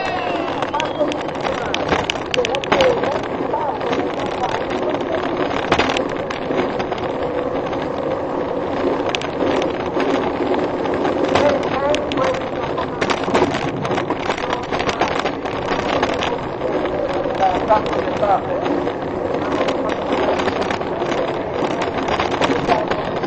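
A wooden gravity cart rattles fast downhill over asphalt.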